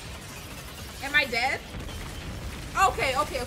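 A young woman laughs and exclaims loudly into a close microphone.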